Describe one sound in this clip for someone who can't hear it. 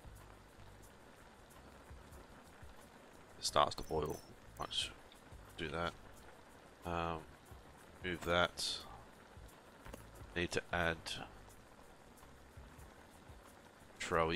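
Water bubbles at a boil in a pot.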